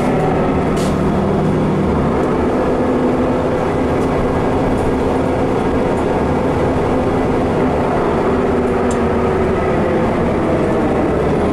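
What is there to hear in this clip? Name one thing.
Tyres roll over the road beneath the bus.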